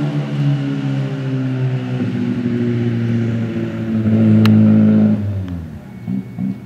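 A rally car engine roars as the car accelerates away up the road.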